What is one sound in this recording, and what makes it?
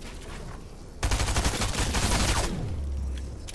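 A pickaxe chops into wood in quick, repeated blows.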